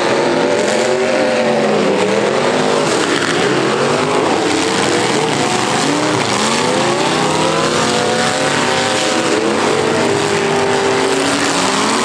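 Several car engines roar and rev loudly, rising and falling in pitch.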